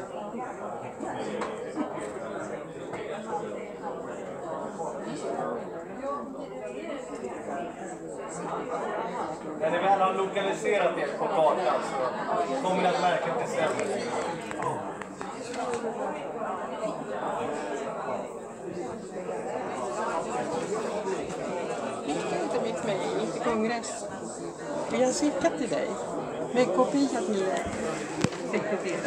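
A crowd of men and women murmur and talk in a large echoing hall.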